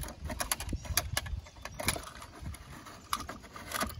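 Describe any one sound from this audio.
A small plastic bin knocks against the truck.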